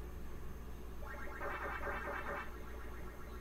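A retro video game plays a quick, repeating chomping blip.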